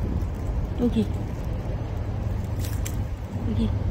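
Dry leaves rustle and crackle as fingers brush them.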